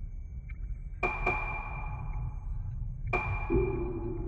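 Menu selection chimes ring out sharply.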